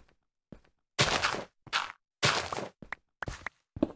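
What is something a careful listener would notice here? Loose dirt and gravel blocks crunch as they break.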